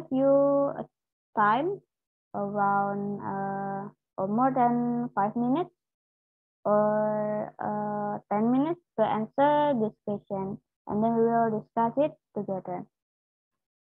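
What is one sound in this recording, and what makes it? A young woman speaks clearly through an online call, as if reading out.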